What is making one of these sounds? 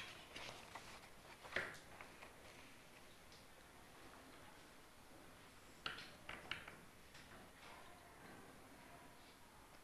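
A woman speaks calmly to a room, heard at a distance.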